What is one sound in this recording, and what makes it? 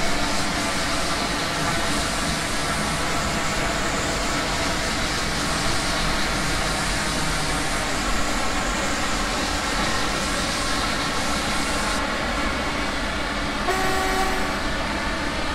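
A train rumbles and hums steadily along rails at speed.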